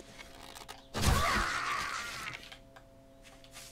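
An arrow strikes with a sharp thud.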